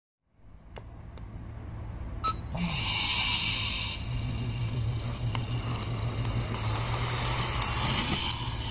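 A toy car's small plastic wheels roll and click on a hard surface.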